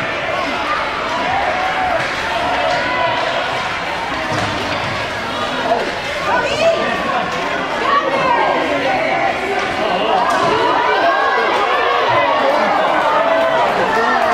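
Hockey sticks clack against the ice and puck.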